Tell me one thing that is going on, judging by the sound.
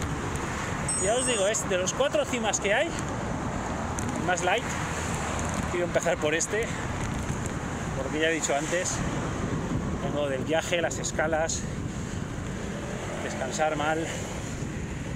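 A man speaks calmly close to the microphone.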